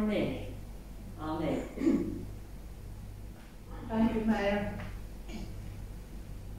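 A woman reads aloud calmly into a microphone.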